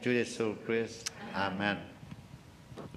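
A middle-aged man speaks into a microphone, heard through loudspeakers in a large room.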